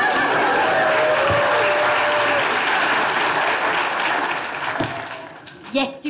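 An audience laughs and applauds loudly in a hall.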